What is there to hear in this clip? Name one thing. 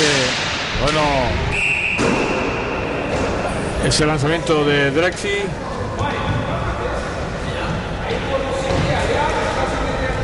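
Hockey sticks clack against a ball.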